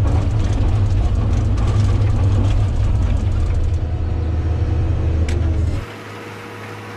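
A diesel engine rumbles loudly up close.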